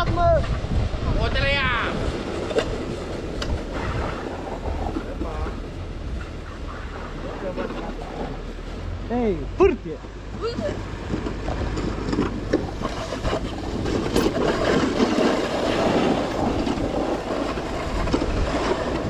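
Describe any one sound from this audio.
Wind rushes past a fast-moving rider.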